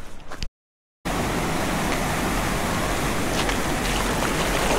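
A shallow stream rushes and splashes over stones.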